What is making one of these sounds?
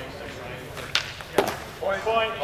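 Longswords clash together.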